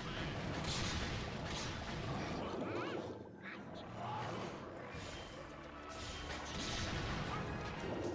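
Blasts burst with a muffled boom.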